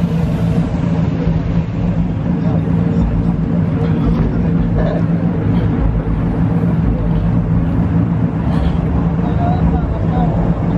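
A car engine idles nearby with a steady low hum.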